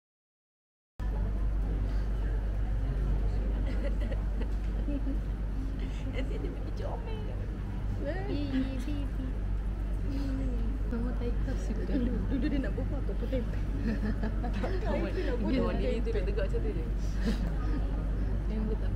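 Women talk and laugh cheerfully nearby.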